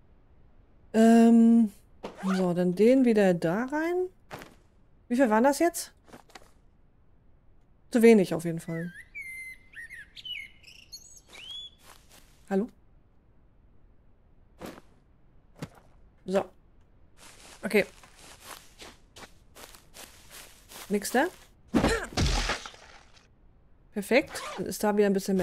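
A young woman speaks animatedly into a close microphone.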